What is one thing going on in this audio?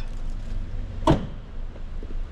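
A car trunk lid slams shut with a thud.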